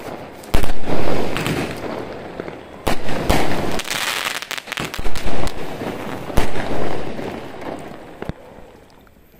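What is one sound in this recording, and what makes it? Fireworks crackle and fizz after bursting.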